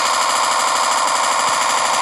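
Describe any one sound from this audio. Rapid gunfire rattles from a rifle.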